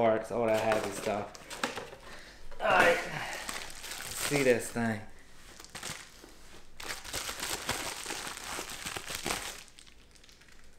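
Plastic bubble wrap crinkles and rustles.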